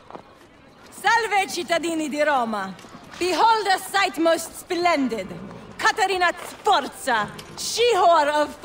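A woman proclaims loudly and theatrically, close by.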